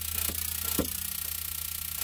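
A spark igniter clicks sharply.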